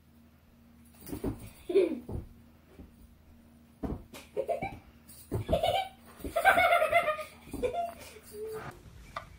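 A young girl talks and laughs excitedly nearby.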